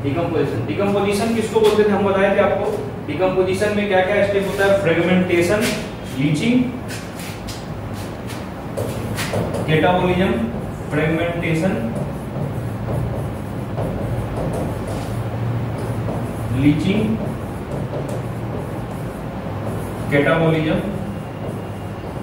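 A young man speaks calmly and clearly into a microphone, explaining.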